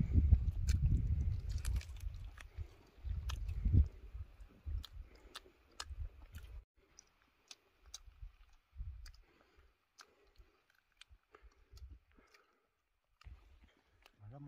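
Food crackles and tears softly close by.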